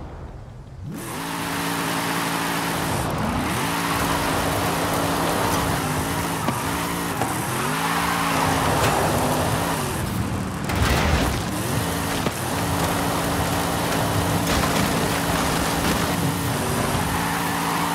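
A racing car engine roars and revs up and down.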